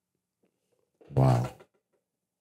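A man says a few words close to a microphone.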